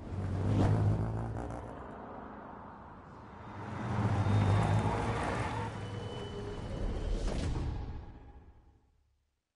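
A car engine roars and revs loudly.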